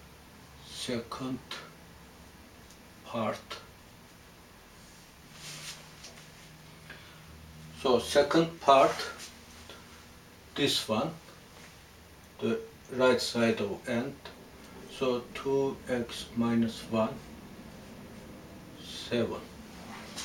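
An elderly man explains calmly, close by.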